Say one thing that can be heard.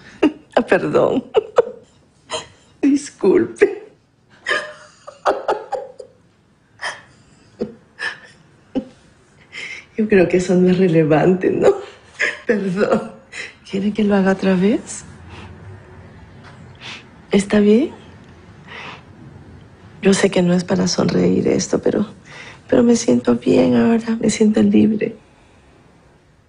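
A middle-aged woman laughs softly.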